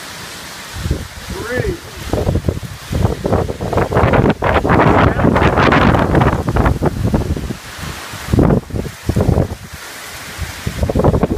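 Strong wind gusts roar through trees and buffet loudly.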